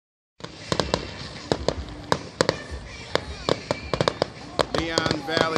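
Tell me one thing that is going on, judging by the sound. Fireworks burst with rapid sharp bangs and crackles outdoors.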